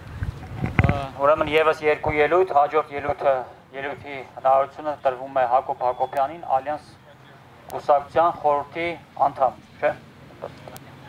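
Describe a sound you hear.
A man shouts through a megaphone outdoors.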